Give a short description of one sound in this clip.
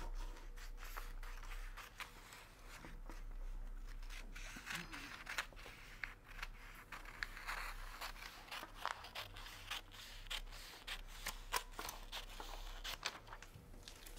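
Scissors snip and crunch through stiff paper with repeated sharp cuts.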